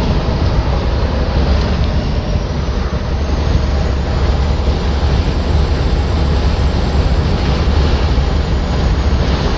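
A car drives steadily along a highway with a low road rumble inside the cabin.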